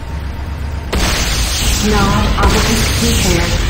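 An explosion booms and roars.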